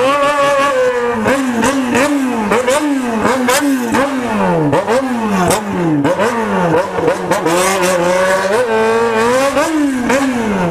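A motorcycle engine revs up and down again and again, close by.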